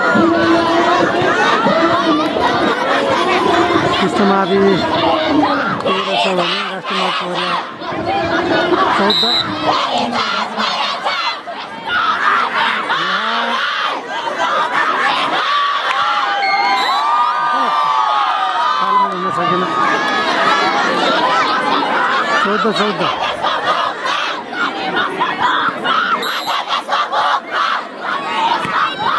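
A large outdoor crowd chatters and cheers.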